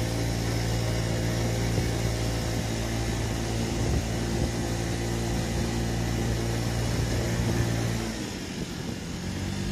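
A scooter engine hums steadily, then eases off.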